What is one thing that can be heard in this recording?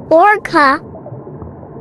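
An orca gives two short, wavering, high whistling calls.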